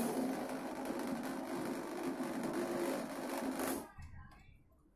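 A corded electric drill runs.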